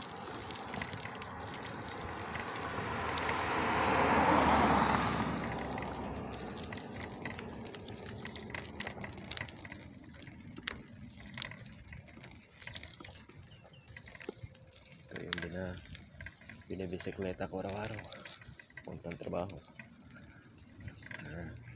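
A bicycle basket rattles and clicks over a bumpy path.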